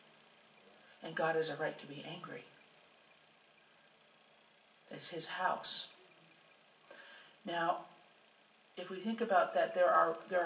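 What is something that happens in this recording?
A woman speaks slowly into a microphone, in short phrases with pauses.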